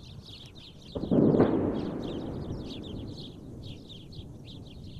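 A distant explosion booms and rumbles away.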